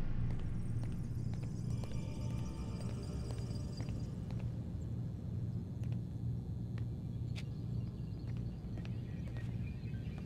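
Footsteps tap on a hard floor at a walking pace.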